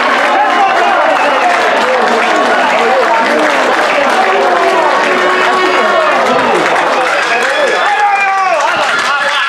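A crowd of men and women chatters loudly outdoors, many voices overlapping.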